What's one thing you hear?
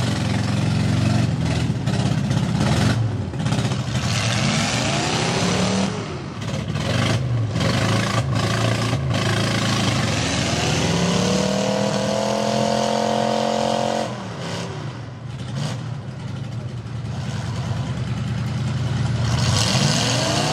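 A truck engine revs hard and roars.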